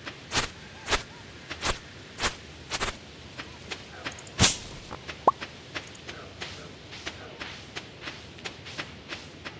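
Footsteps crunch across sand and then thud on wooden boards.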